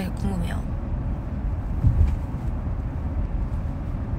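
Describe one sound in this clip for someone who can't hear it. A young woman speaks softly close to a phone microphone.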